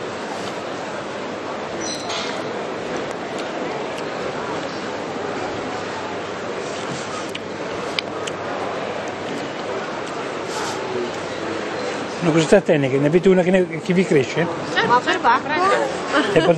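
A crowd murmurs in a busy indoor space.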